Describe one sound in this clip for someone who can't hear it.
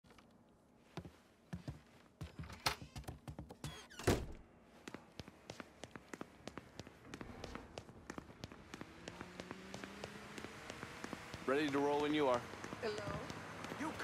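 Footsteps run quickly across a wooden floor.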